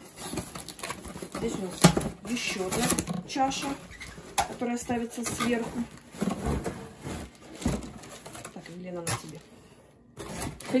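Cardboard boxes rustle and scrape as hands handle them.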